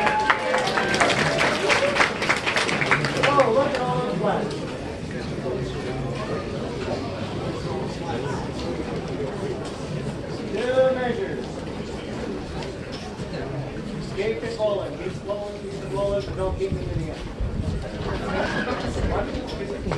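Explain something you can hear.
A brass band plays outdoors.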